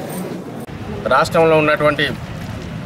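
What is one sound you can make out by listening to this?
A man speaks loudly and with animation close to a microphone.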